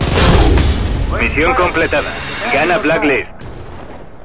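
A game jingle plays as a mission ends.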